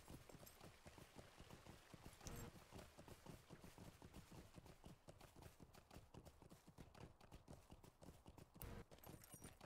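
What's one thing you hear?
A horse's hooves clop steadily on cobblestones.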